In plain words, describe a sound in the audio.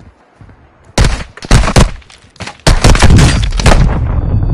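A rifle fires loud rapid bursts indoors.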